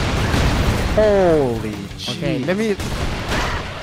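A young man speaks into a microphone with animation.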